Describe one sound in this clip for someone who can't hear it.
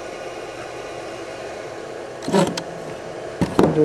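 A plastic panel knocks against its casing as it is lifted out.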